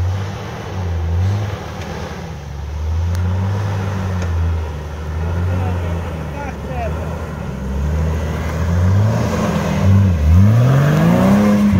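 Tyres grind and crunch over rocks.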